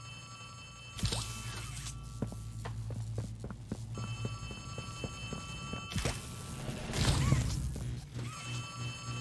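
Electricity crackles and buzzes in sharp bursts.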